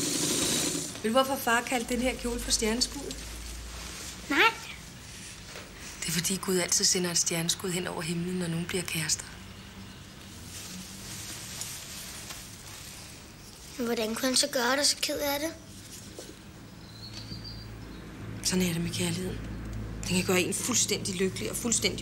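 A woman speaks warmly and close by.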